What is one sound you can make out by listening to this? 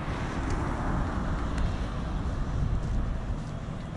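A car drives by on the street nearby.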